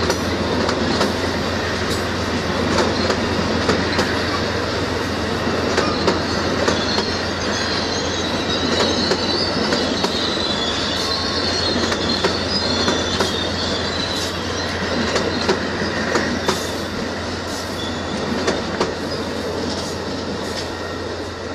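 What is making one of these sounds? A passenger train rumbles past close by at speed.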